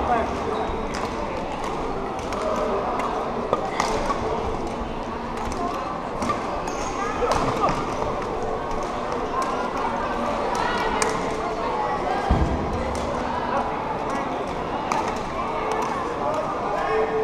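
Shuttlecocks are struck with sharp pops of badminton rackets in a large echoing hall.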